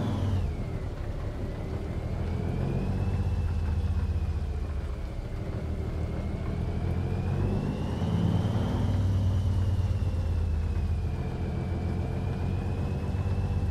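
A truck engine rumbles steadily at low speed, its pitch rising and falling gently.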